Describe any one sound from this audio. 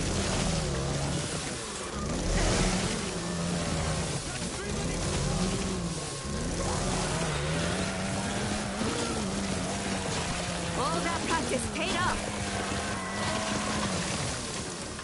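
A chainsaw engine drones and revs.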